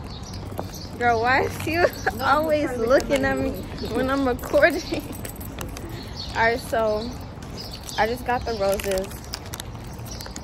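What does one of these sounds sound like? A young woman speaks cheerfully close to the microphone.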